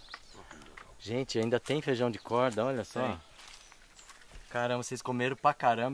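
A man talks calmly close by.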